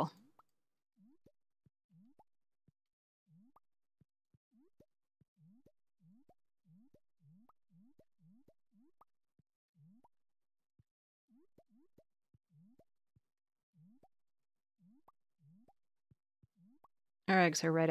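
Soft little pops sound as eggs are picked up, one after another.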